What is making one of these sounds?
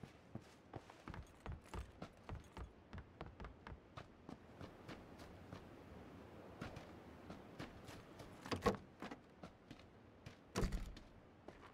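Quick footsteps thud on wooden floors and ground.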